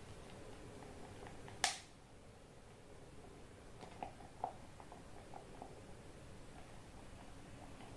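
A wooden stick stirs liquid in a plastic cup, tapping and scraping softly.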